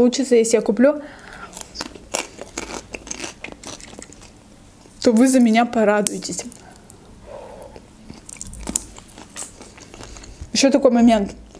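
A young woman chews and crunches crunchy snacks close to a microphone.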